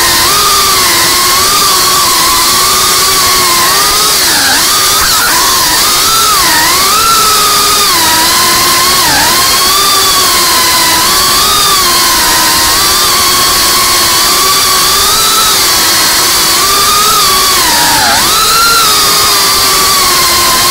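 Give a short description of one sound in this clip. The motors of a small FPV drone whine, rising and falling in pitch as it swoops and turns.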